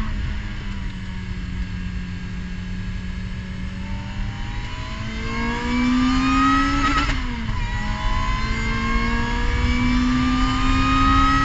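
A race car engine accelerates at full throttle, its pitch climbing.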